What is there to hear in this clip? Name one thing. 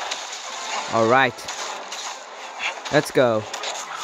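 Blaster shots fire and strike with sharp zaps.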